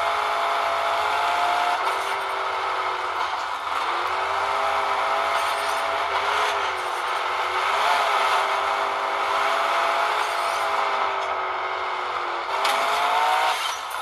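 A game's truck engine roars and revs steadily.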